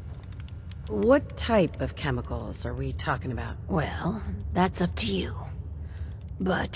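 A young woman asks a question calmly.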